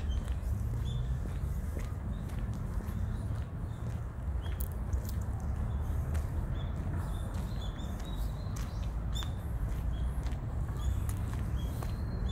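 Birds chirp softly nearby.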